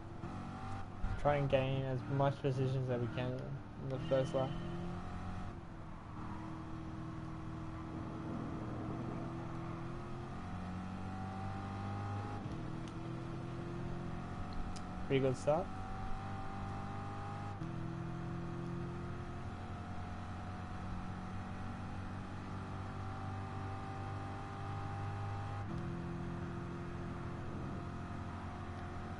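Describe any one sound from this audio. A racing car engine revs high and shifts up through the gears.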